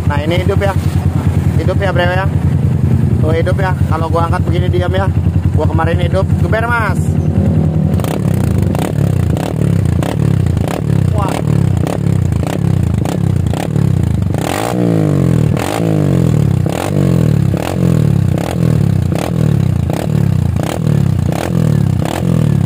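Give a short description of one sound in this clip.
A motorcycle engine idles close by with a loud, throaty rumble through its exhaust.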